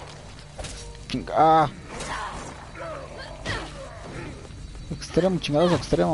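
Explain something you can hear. Game weapons fire and strike during a fight.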